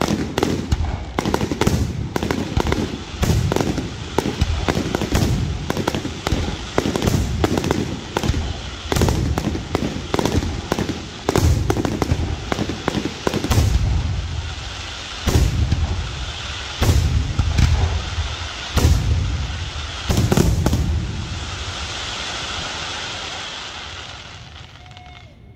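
Fireworks crackle and fizz as they burst.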